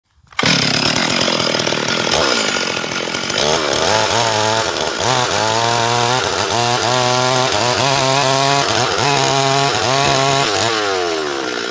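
A chainsaw engine roars loudly as it cuts through a log.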